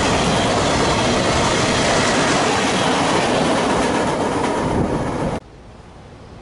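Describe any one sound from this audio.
Freight cars rumble and clatter loudly along the rails.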